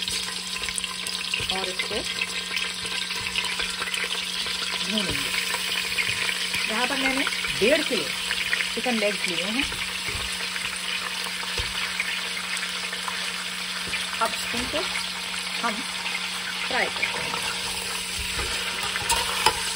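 Oil sizzles steadily in a hot pot.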